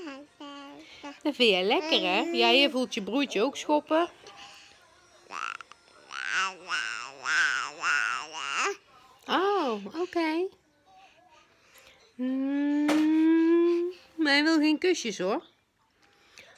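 A woman speaks close by in a playful, sing-song voice.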